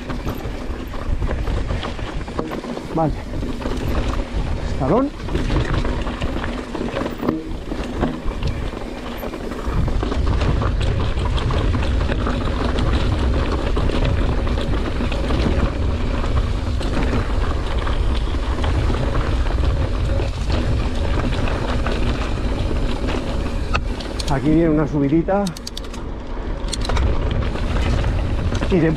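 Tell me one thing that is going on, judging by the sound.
Bicycle tyres crunch and rattle over a rough gravel trail.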